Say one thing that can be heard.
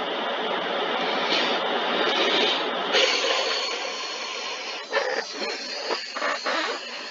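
Water sprays with a steady hiss.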